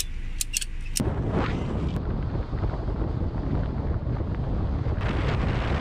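Wind rushes loudly past a moving car.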